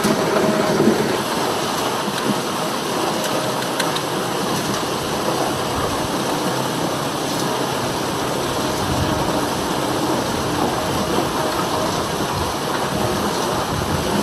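Sweet potatoes knock and thump against each other in a turning drum.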